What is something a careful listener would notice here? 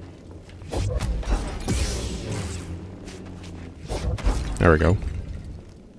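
A lightsaber hums and swishes.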